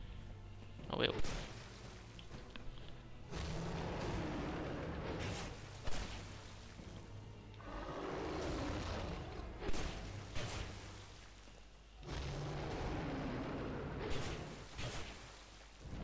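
Weapons strike with sharp, heavy blows.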